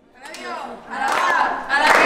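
A young woman shouts excitedly up close.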